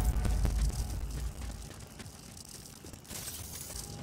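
Leaves rustle as someone pushes through thick brush.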